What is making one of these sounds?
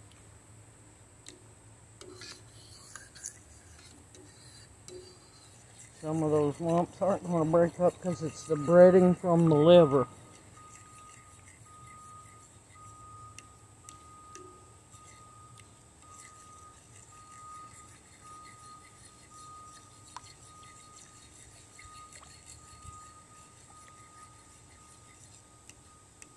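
A fork scrapes and taps against a metal pan.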